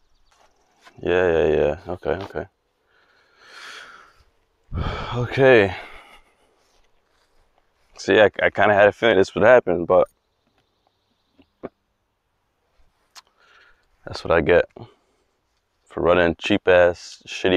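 A young man talks calmly and close into a clip-on microphone.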